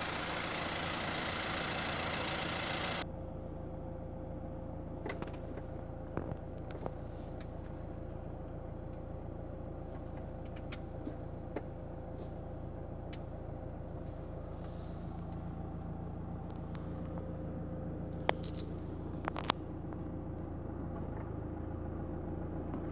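A four-cylinder diesel engine idles.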